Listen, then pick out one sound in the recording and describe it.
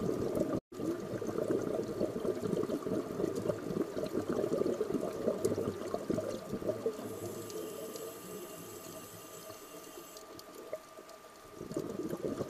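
Muffled underwater crackling and rumbling fills the water.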